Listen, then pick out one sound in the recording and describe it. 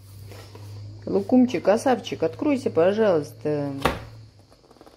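A cardboard box lid taps and slides on a hard surface.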